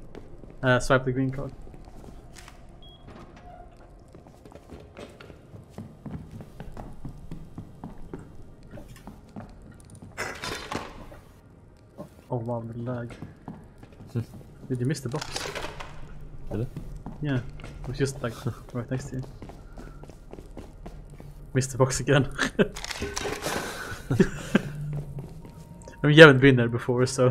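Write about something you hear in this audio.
Footsteps thud on wooden and metal floors.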